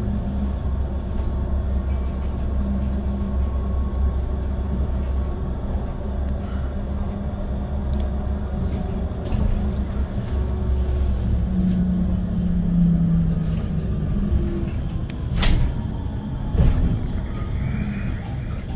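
A vehicle's engine rumbles low and steady as it drives along.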